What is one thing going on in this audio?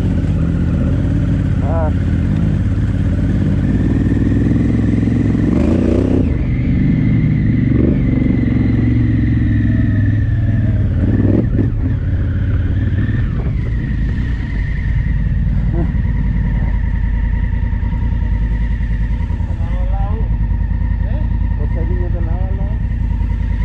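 A motorcycle engine rumbles up close, rising and falling with the throttle, then idles steadily.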